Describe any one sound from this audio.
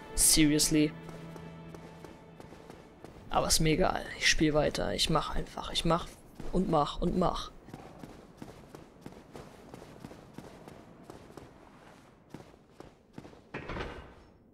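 Armoured footsteps clank on stone steps.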